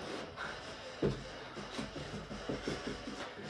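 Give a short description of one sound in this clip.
Feet thump softly on a carpeted floor in a quick rhythm.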